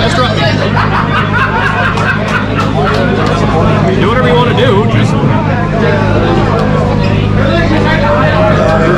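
Playing cards slap and rustle as a deck is shuffled by hand.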